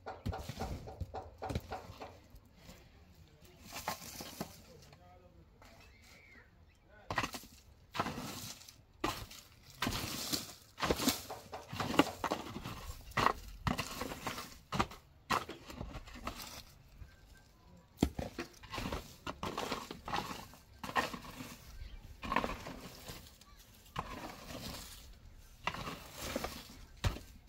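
A hoe scrapes and thuds into dry, stony soil again and again.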